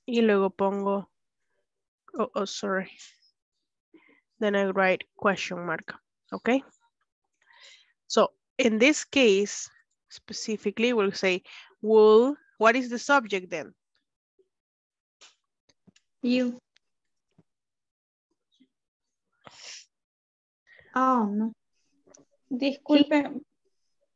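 A woman speaks calmly and clearly into a microphone, with pauses.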